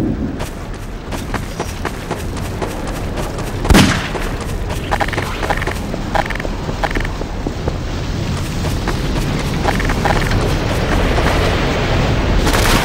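A tornado roars with a low, rumbling wind that slowly grows louder.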